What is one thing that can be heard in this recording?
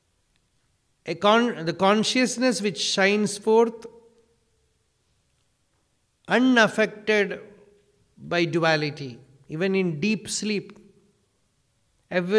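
A man speaks with animation into a microphone, with pauses between phrases.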